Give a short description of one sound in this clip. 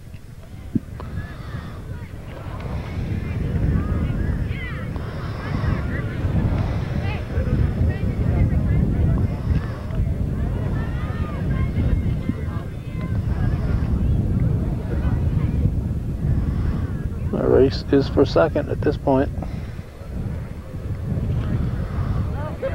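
A crowd of young people chatters in the distance.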